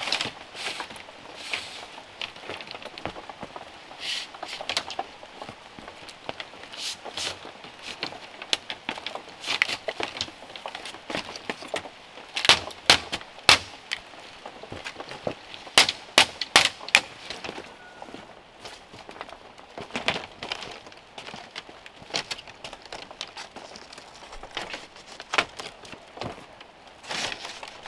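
Bamboo strips clatter and knock as they are laid and woven.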